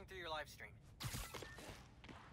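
A short sharp zip sounds as a line shoots out.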